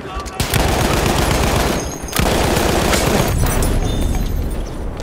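A heavy machine gun fires long rapid bursts.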